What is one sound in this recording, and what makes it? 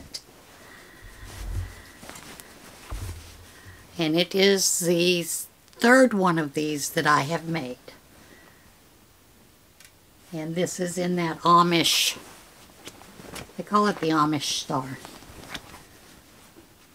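Fabric rustles as a quilt is handled.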